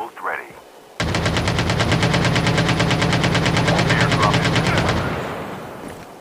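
An automatic rifle fires a long, rapid burst of shots.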